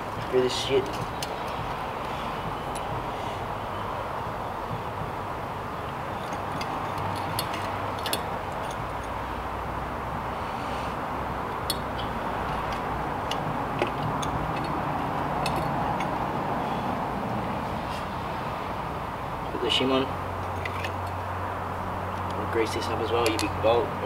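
Metal tools click and clink against scooter parts.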